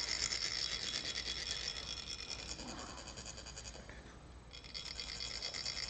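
Metal sand funnels are rasped rapidly, making a fast, high, ringing trill.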